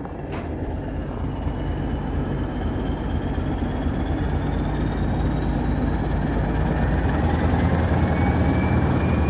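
An electric train motor whines, rising steadily in pitch as the train speeds up.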